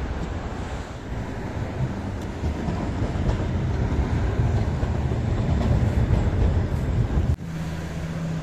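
Traffic rumbles past on a city street.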